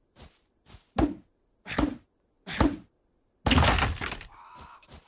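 Sharp blows land hard several times.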